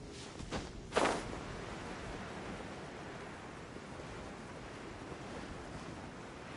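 Wind rushes past steadily.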